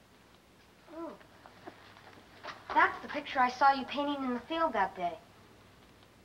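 A boy speaks nearby.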